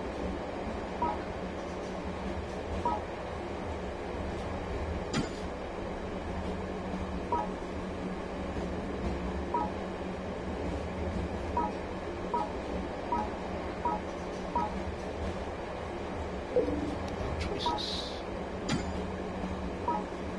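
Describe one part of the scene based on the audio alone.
Short electronic blips sound each time a menu choice changes.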